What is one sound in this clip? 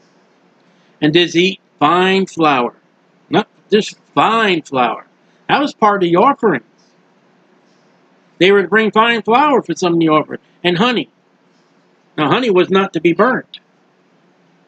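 A middle-aged man speaks calmly and closely into a microphone, in short bursts with pauses.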